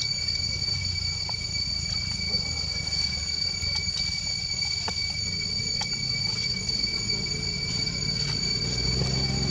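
Dry leaves rustle softly as a baby monkey scrambles about on the ground.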